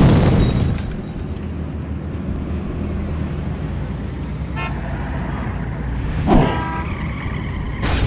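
Heavy footsteps thud along a street.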